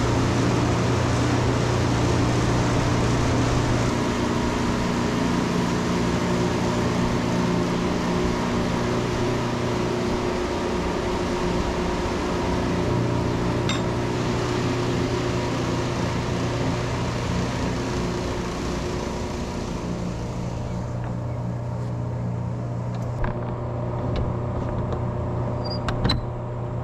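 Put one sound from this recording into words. Large fans hum steadily.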